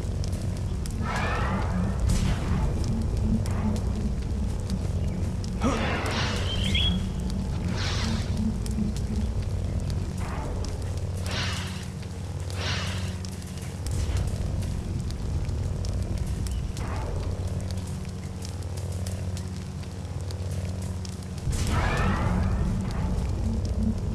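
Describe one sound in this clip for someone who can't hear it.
A lightsaber swooshes through the air.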